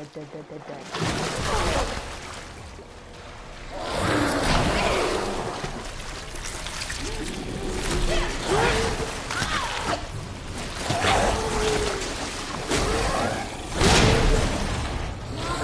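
A creature snarls and growls loudly during a struggle.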